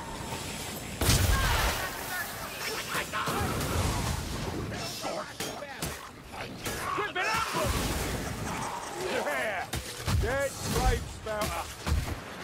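Blades slash and thud heavily into flesh in quick bursts.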